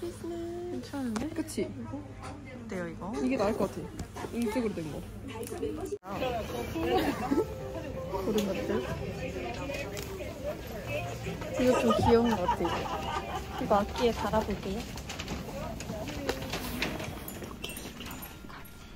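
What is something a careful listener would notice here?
Young women talk with animation close by.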